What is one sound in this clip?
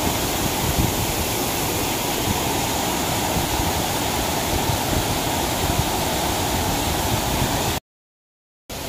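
Water rushes steadily over a row of weirs.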